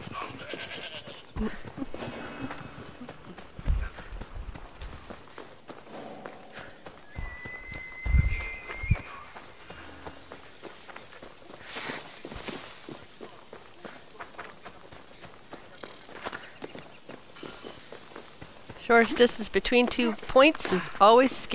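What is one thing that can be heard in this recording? Footsteps run quickly over dirt and grass.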